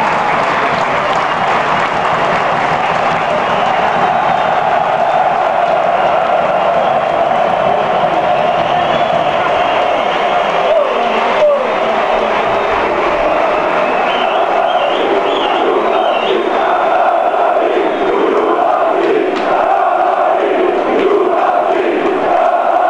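A large stadium crowd roars and chants loudly outdoors.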